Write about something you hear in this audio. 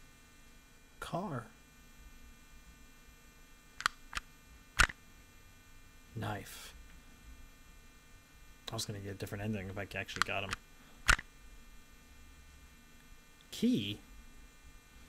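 A young man speaks into a microphone in short bursts.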